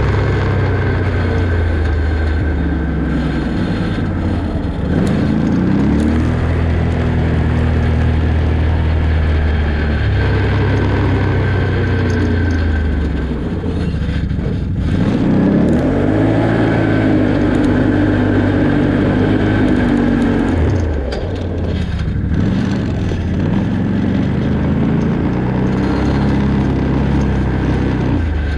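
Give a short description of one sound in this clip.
An engine hums and revs up and down as a vehicle drives along.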